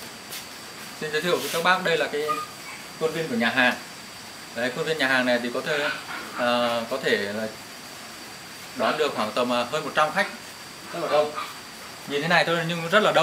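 A young man speaks calmly and close by, pausing between phrases.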